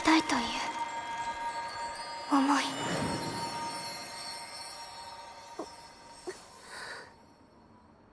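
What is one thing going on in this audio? A shimmering, sparkling chime rings out and fades.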